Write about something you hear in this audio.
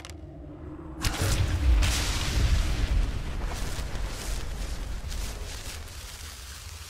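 A magical burst crackles and hums loudly.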